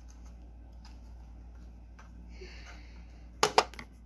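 Plastic toy pieces click and rattle in hands.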